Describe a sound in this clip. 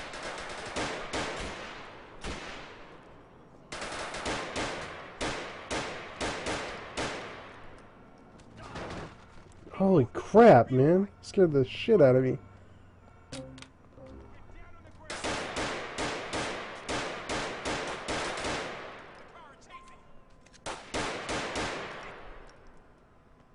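A pistol fires rapid shots that echo between buildings.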